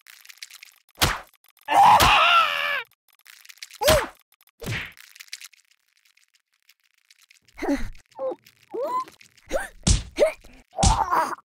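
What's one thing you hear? Soft thuds and squishes land in quick hits.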